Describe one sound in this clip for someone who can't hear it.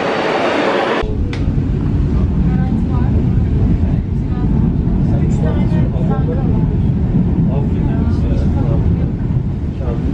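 A train rumbles steadily on its tracks from inside a carriage.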